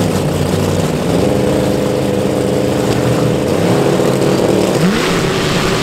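A race car engine idles loudly with a rough, throbbing rumble.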